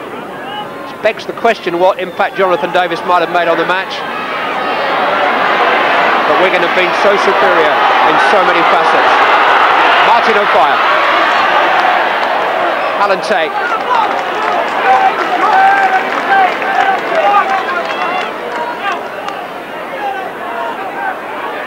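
A large stadium crowd cheers, swelling to a loud roar and then slowly easing off.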